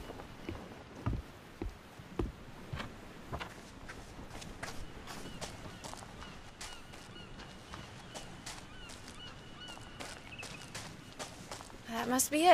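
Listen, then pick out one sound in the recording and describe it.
Footsteps fall on a dirt path.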